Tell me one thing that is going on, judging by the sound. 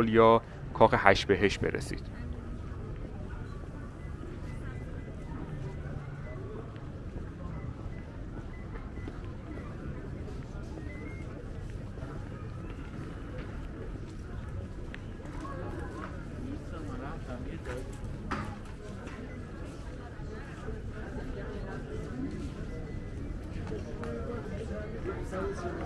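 A crowd of people talks in a low, steady murmur outdoors.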